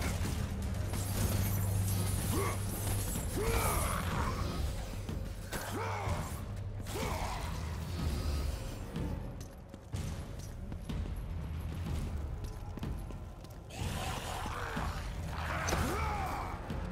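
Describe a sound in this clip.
Blades slash and thud in a fast fight.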